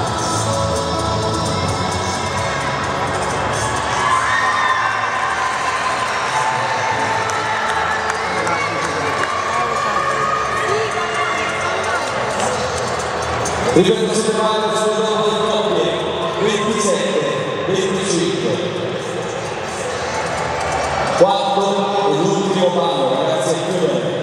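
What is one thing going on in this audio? Dance music plays loudly over loudspeakers in a large echoing hall.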